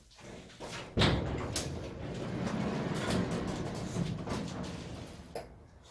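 A garage door rattles and rumbles as it swings open.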